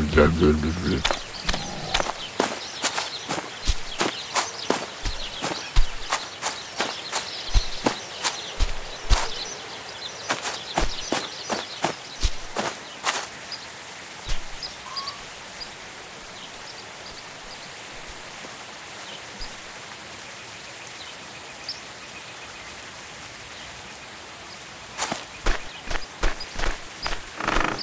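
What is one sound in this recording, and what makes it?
Footsteps tread steadily through wet grass.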